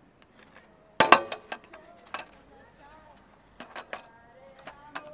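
A skateboard knocks against a metal rail.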